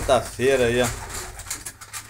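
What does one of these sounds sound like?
A pigeon flaps its wings briefly.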